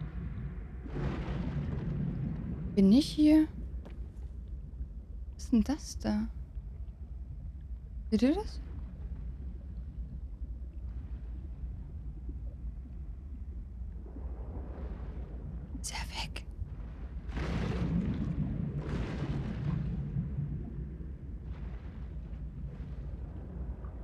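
A low engine hums steadily underwater.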